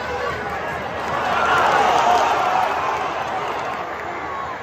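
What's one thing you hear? A large football crowd roars.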